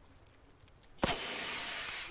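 A flare gun fires with a sharp bang.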